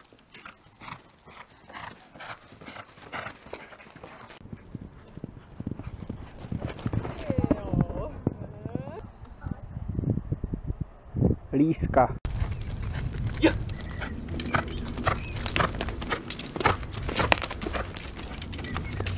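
A horse's hooves thud on grass as it gallops.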